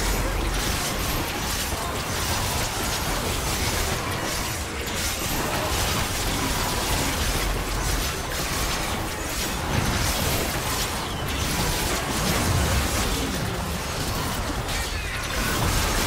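Fantasy battle sound effects clash, crackle and boom without pause.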